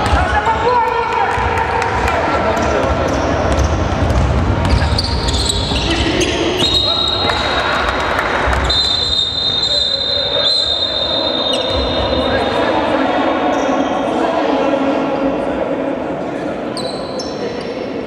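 Sneakers squeak sharply on a hard court.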